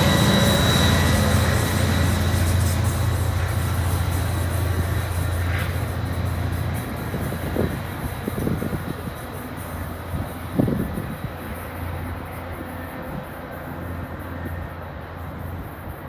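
A diesel locomotive engine rumbles loudly and slowly fades as the train pulls away.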